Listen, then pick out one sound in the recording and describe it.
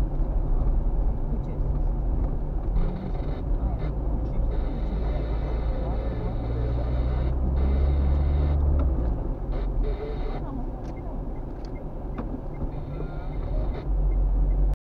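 Tyres roll over the road with a steady rumble.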